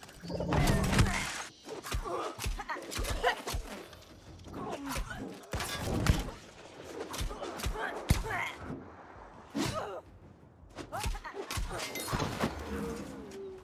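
Blades clash and strike repeatedly in a fight.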